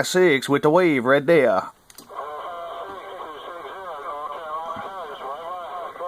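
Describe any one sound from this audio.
A radio receiver plays a loud, distorted transmission over static.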